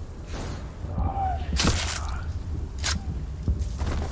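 A blade slashes and strikes armour with a sharp clang.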